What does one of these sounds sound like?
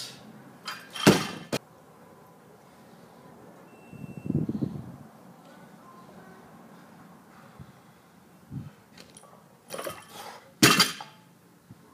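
A loaded barbell drops and thuds onto the ground.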